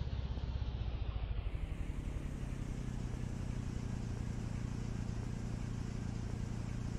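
A small vehicle engine rumbles steadily at a low pitch.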